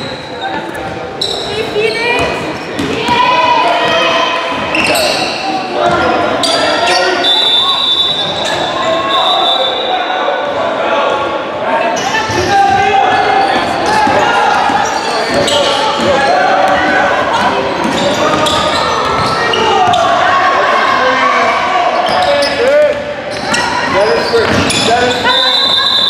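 Young girls shout to one another across an echoing gym.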